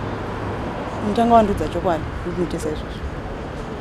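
Another young woman speaks firmly and sternly nearby.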